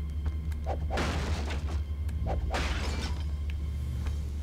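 A sword whooshes through the air.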